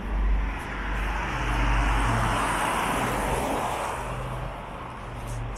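Cars drive past along a street.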